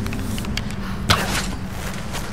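A bow releases an arrow with a sharp twang.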